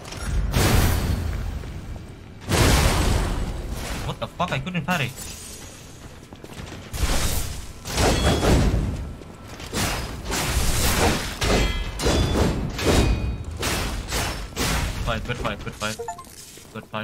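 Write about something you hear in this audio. A sword clashes and slashes in repeated heavy blows.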